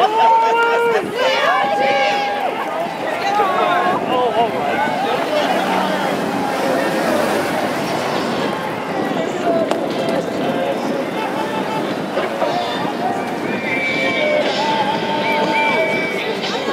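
A crowd of people shouts and chants outdoors.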